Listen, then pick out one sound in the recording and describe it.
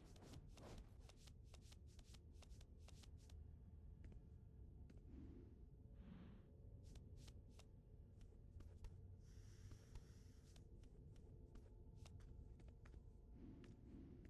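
A game character's footsteps tap quickly on a hard floor.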